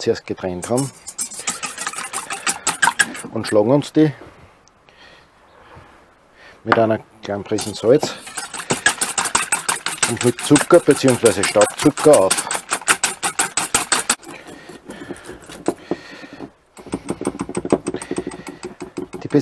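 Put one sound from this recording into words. A wire whisk clatters rapidly against a metal bowl.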